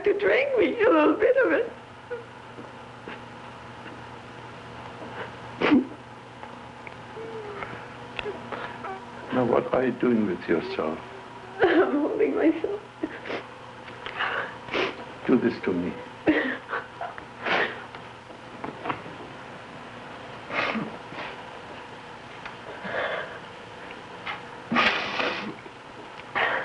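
A young woman speaks in a trembling, tearful voice close by.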